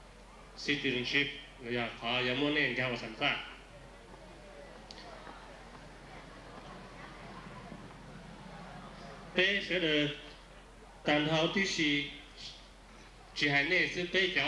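A middle-aged man speaks calmly into a microphone outdoors, with long pauses.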